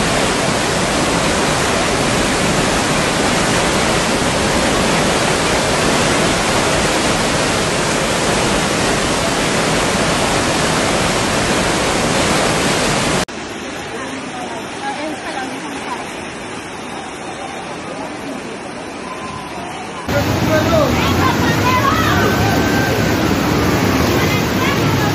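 Floodwater rushes and roars loudly and steadily.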